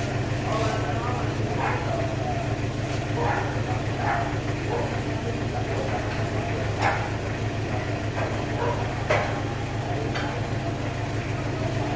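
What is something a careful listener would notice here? A metal gate latch rattles and clicks.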